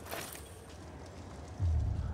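A fire crackles in a metal barrel.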